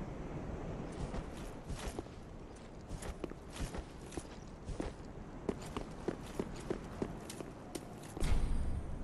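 Heavy armored footsteps clank steadily on stone.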